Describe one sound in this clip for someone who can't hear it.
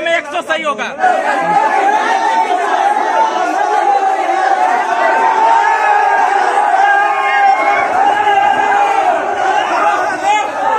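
A crowd of men shouts and clamours outdoors.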